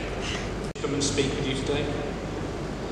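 An older man speaks calmly through a microphone and loudspeakers.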